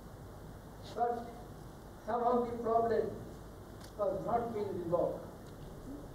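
An elderly man speaks slowly and calmly into a microphone, heard through loudspeakers in a large hall.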